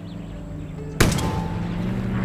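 A rocket launches with a sudden loud blast.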